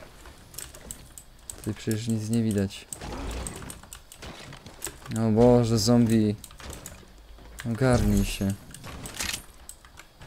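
Wooden building pieces clatter and snap into place.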